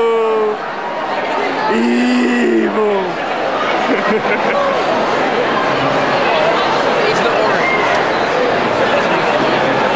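A crowd murmurs and chatters all around in a large echoing hall.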